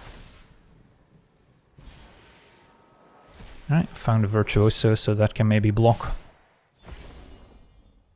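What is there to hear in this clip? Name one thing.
Card game effects chime and whoosh.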